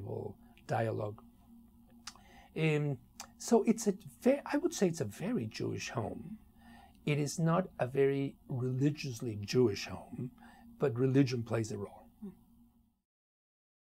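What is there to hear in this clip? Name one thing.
A middle-aged man speaks calmly and thoughtfully into a close microphone.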